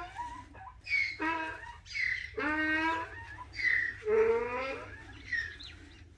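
A calf bleats loudly several times close by.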